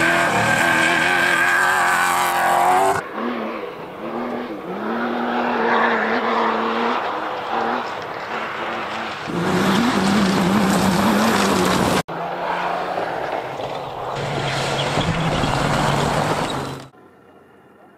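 A rally car engine roars at full throttle.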